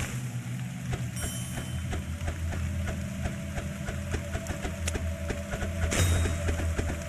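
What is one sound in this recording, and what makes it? Towers in a game fire shots with quick, repeated clicking sounds.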